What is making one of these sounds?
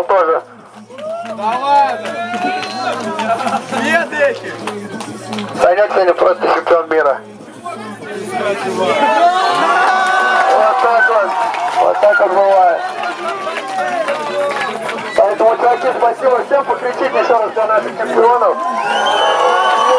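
Young men talk and laugh with excitement close by.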